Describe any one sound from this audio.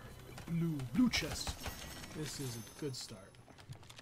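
A treasure chest creaks open with a shimmering chime.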